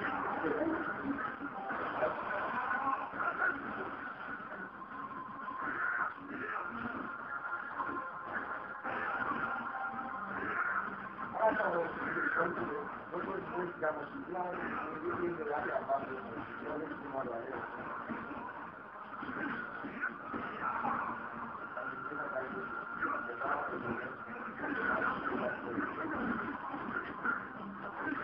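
Fighting game music plays through a television speaker.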